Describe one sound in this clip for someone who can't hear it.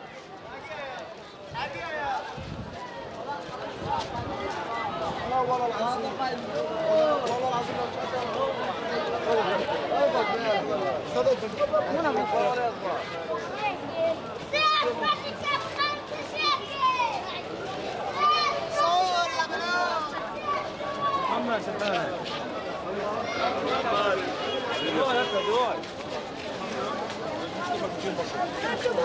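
A dense crowd of men and women chatters all around, outdoors.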